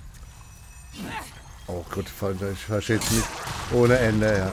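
A sword swings and strikes with heavy clashing blows.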